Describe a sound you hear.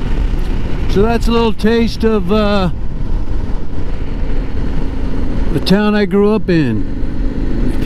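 A motorcycle engine revs in short wavering bursts.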